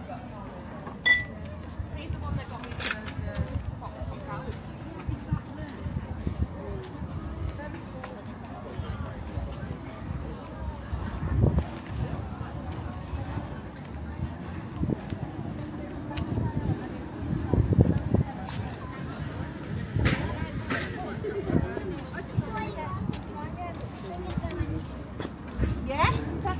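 A crowd of men and women chat in a low murmur outdoors.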